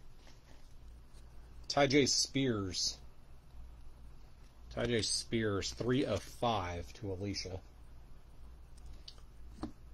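A hard plastic card case clicks and rubs softly in someone's hands.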